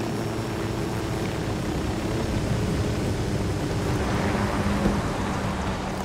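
Rotor wash rushes through leaves and grass.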